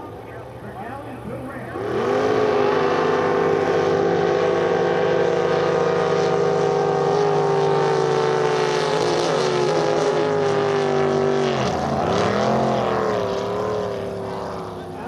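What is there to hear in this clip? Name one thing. A racing boat engine roars loudly as the boat speeds past, its pitch dipping as it passes.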